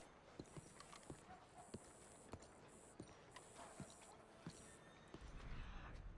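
Boots tread steadily on stone paving.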